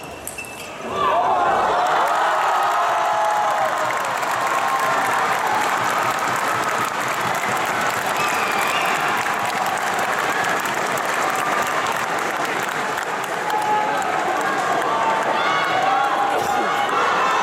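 A large crowd cheers and roars loudly in a big echoing hall.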